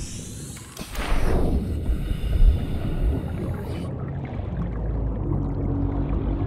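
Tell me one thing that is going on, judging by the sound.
Water rumbles and bubbles all around, heard as if underwater.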